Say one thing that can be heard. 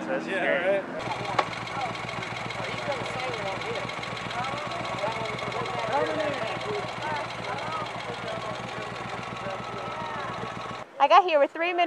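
A motorcycle engine idles with a steady rumble.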